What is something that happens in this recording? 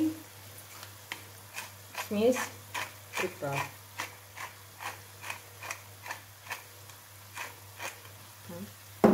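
A pepper grinder crunches and clicks in quick bursts.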